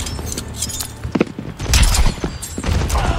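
A large robot crashes down with a heavy metallic thud.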